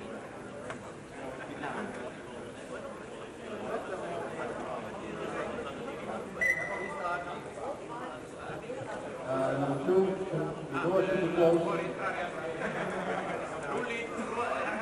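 A crowd of spectators chatters and murmurs.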